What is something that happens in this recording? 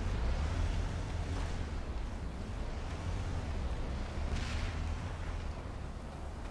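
A heavy vehicle engine rumbles low and steady nearby.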